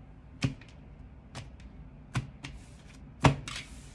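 A card taps down onto a wooden table.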